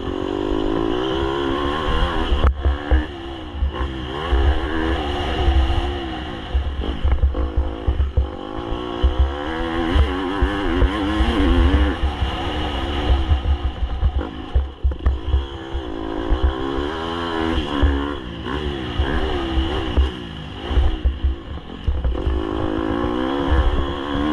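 Tyres rumble and crunch over a rough dirt track.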